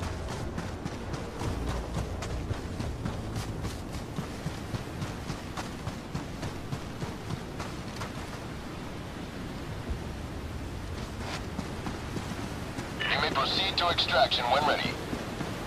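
Footsteps tread quickly over soft ground.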